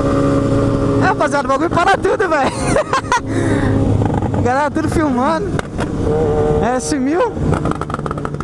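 A motorcycle engine revs up and down sharply.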